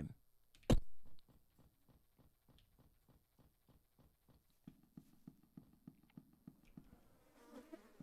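Footsteps tap along a stone floor at a steady walking pace.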